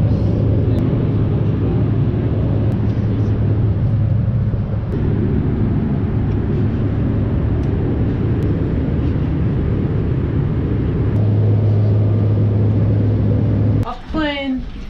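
A plane's engines roar steadily inside the cabin.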